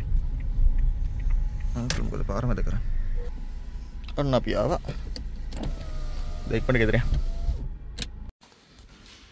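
A car engine idles, heard from inside the car.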